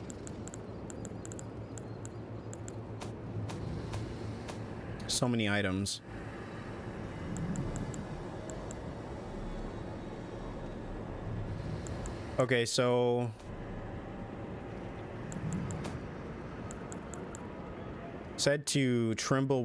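Short soft clicks tick now and then.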